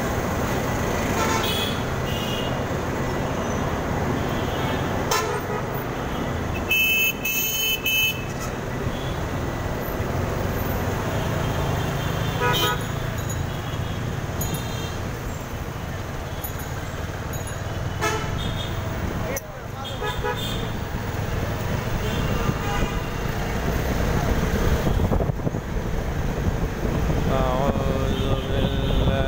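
Traffic rumbles all around on a busy street.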